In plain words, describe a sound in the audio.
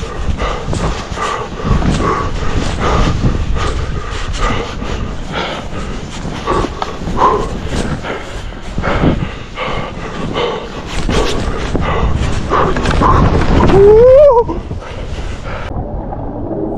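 Skis swish and hiss through deep powder snow in quick rushes.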